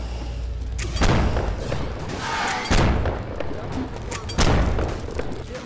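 A blunderbuss fires loud booming shots.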